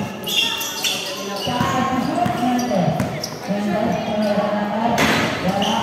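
A basketball bounces on a concrete court.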